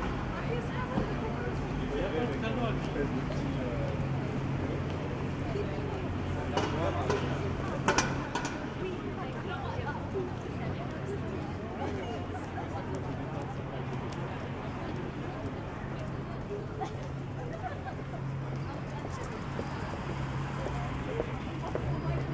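Footsteps of people walking on pavement patter nearby.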